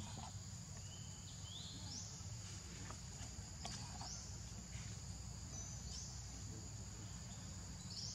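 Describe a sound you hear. Monkeys patter over dry leaves on the ground.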